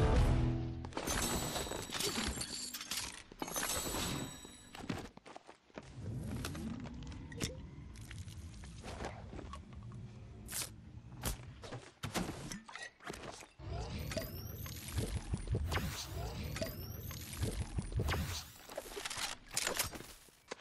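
Short chimes sound as items are picked up in a video game.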